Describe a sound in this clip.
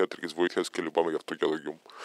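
Calculator keys click under a finger.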